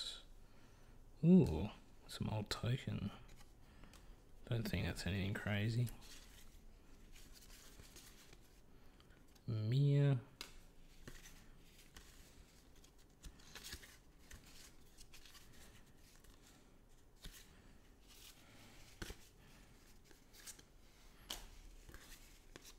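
Playing cards rustle and slide against one another as they are shuffled through by hand.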